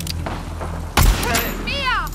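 A pistol fires a single sharp shot.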